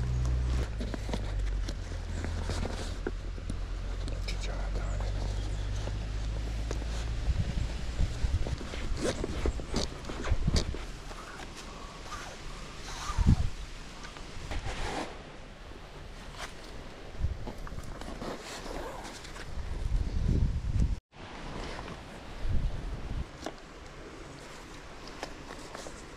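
Hands rustle and tug at a fabric bag.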